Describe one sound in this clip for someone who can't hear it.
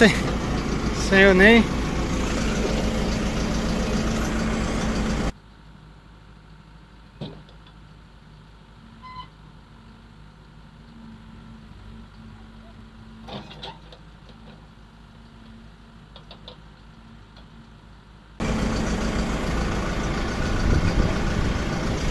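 A tractor engine rumbles loudly up close.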